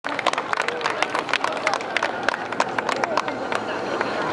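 Wooden clappers clack rapidly in a quick rhythm.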